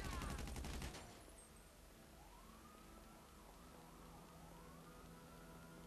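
A jet engine whines steadily nearby.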